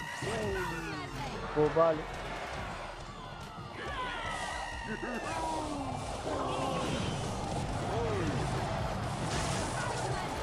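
Game sound effects chime and whoosh.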